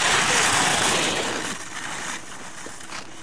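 Skis scrape and hiss across hard snow close by.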